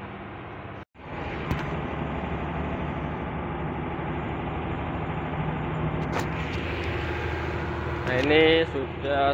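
A truck rolls along a road.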